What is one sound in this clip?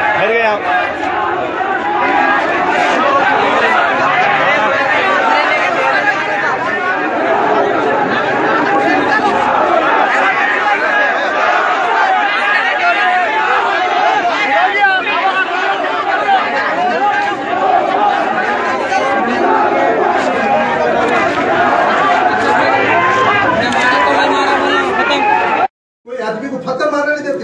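A crowd of men shouts and clamours loudly close by.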